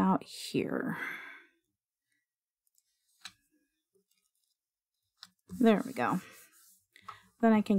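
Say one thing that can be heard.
Paper slides softly across a hard surface.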